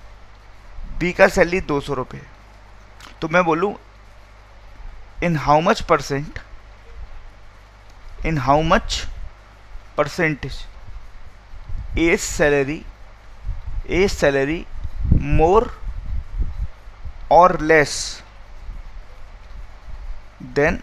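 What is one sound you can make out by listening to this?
A man speaks calmly into a headset microphone, explaining in short phrases.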